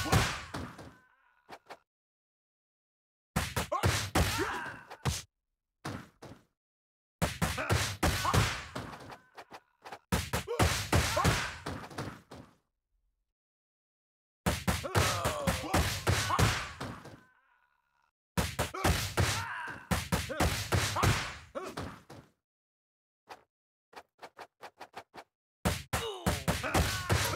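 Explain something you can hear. Punches and kicks land with sharp smacks in quick bursts.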